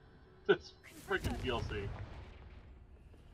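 A magic spell bursts with a crackling whoosh.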